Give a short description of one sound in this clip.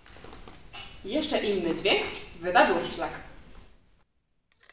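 A young woman speaks with animation.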